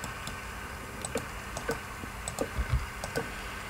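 A block mechanism clicks as it pops out small items in quick bursts.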